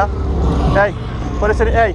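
A motorcycle rides past.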